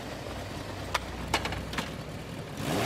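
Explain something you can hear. A motorcycle engine starts up nearby.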